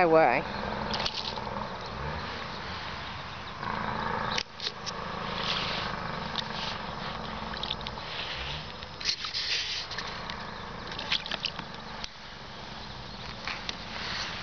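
Water splashes in a tub as an animal paws at it.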